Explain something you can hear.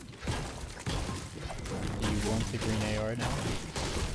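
A pickaxe strikes wood with dull knocks.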